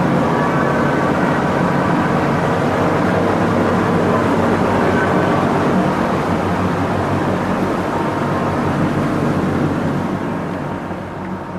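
Wind rushes steadily on an open deck.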